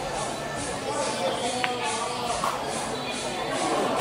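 A cue ball strikes and clacks against other balls on a pool table.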